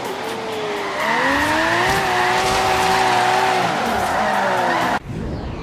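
Tyres screech as a car slides through a turn.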